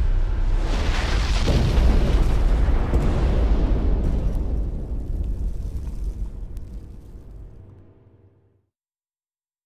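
A loud explosion booms and debris crashes.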